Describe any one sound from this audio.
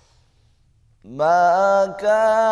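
A man chants in a drawn-out, melodic voice close to a microphone.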